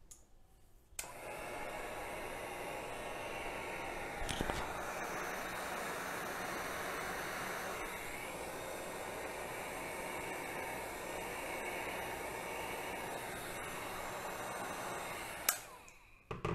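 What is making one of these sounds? A heat gun blows with a steady whooshing hum.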